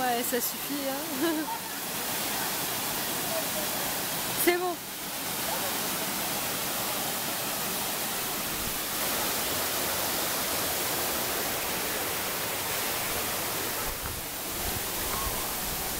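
A waterfall rushes and splashes steadily nearby.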